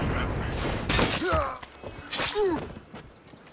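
A blade strikes with a heavy thud.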